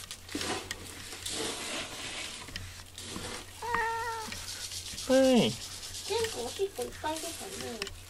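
A brush strokes through a cat's fur.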